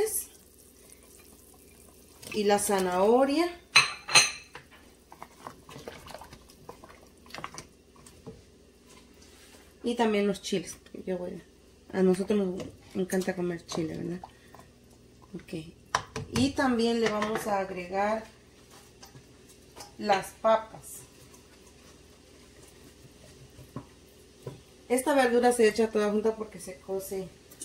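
Soup bubbles gently in a pot.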